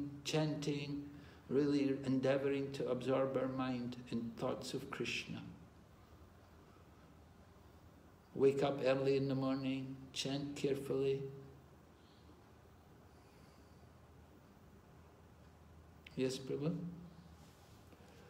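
An elderly man speaks calmly, close to the microphone, with pauses.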